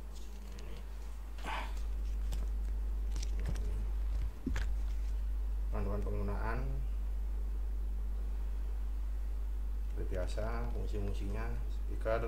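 A paper leaflet rustles as it is unfolded.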